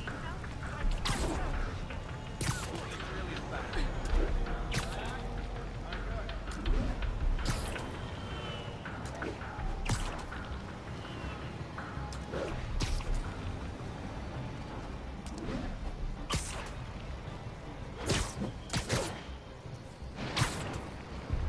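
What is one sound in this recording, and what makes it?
Web lines shoot out again and again with sharp whooshing snaps.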